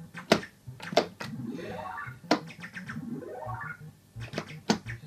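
Rising electronic tones sweep up from an arcade game.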